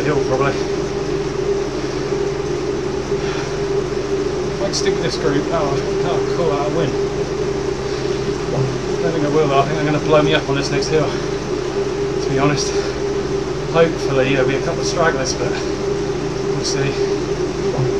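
A young man talks breathlessly and close to a microphone.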